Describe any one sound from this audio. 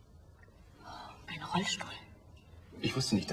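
A young woman speaks with surprise nearby.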